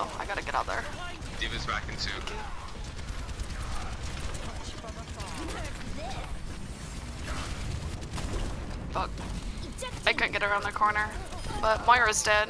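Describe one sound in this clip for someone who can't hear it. Energy weapons fire in rapid, crackling bursts.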